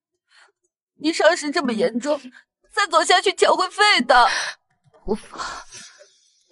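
A second young woman speaks with concern, close by.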